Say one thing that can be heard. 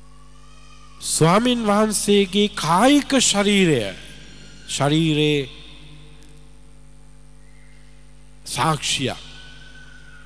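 A middle-aged man speaks with animation into a microphone, his voice ringing through a loudspeaker.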